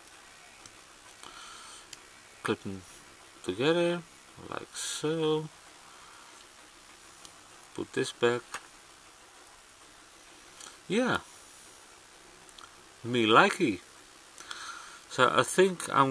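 Small plastic parts click softly as a toy is handled.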